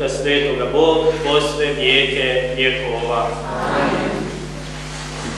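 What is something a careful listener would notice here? A man chants through a microphone in a reverberant hall.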